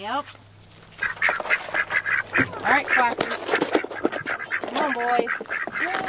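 Ducks quack loudly and rapidly close by.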